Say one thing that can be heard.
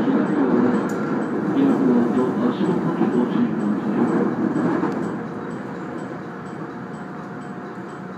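A train rumbles steadily along the rails, softening after a few seconds.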